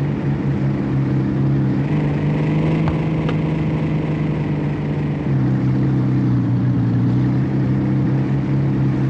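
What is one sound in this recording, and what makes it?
A sports car engine hums steadily, its pitch shifting as it speeds up and slows down.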